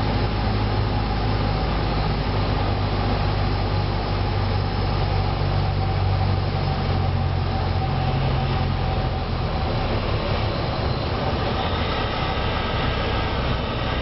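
Wind rushes over a small plane as it speeds along a runway.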